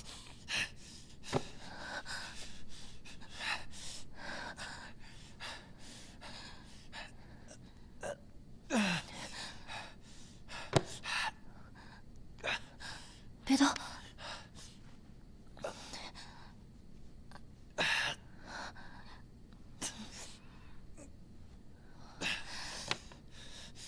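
A young woman speaks softly and with concern, close by.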